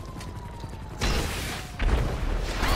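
A gun fires loud shots.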